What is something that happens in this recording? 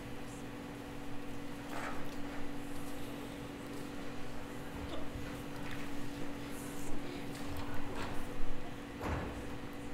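Young actors speak lines, heard from a distance in a large room.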